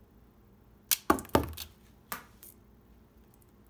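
A small plastic disc clatters down onto a hard surface and spins.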